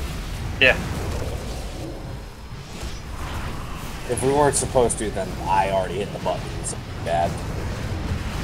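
Spell effects whoosh and crackle in a fast battle.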